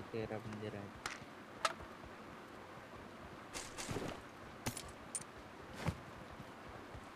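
Short clicks sound as items are picked up in a video game.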